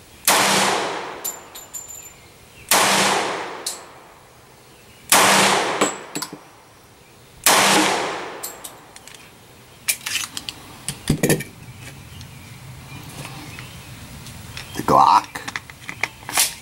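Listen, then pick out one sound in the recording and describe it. Fragments patter and click as bullets tear through a target.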